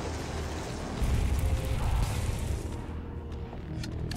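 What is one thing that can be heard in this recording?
A flamethrower roars in a video game.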